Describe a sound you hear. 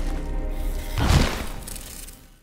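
A body falls and thuds heavily onto a stone floor.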